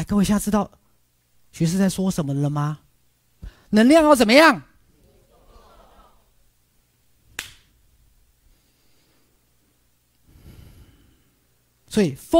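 A man speaks animatedly into a headset microphone, in short expressive bursts.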